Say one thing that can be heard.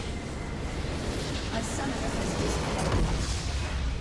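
A tower crumbles with a heavy crash.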